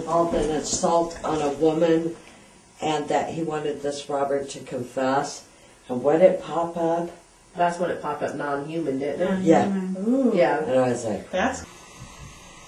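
A middle-aged woman talks with animation nearby.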